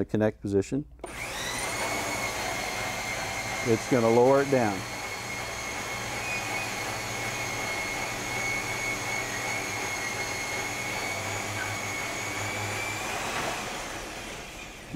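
A motor whirs steadily, then stops.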